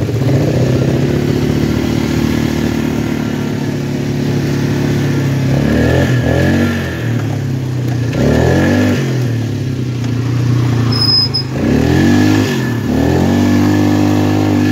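A quad bike engine drones steadily and revs up and down again and again.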